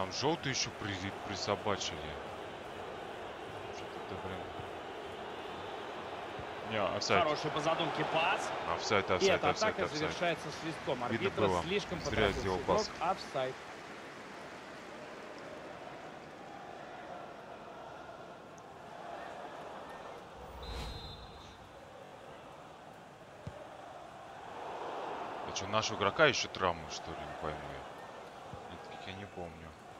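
A large stadium crowd murmurs and cheers steadily in the distance.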